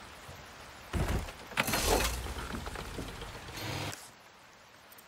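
A small boat motor hums and splashes through water.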